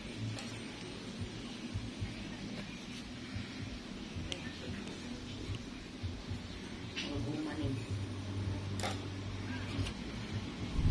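Small nail clippers snip with faint sharp clicks.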